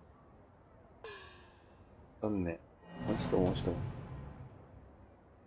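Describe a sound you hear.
Video game sound effects whoosh and chime.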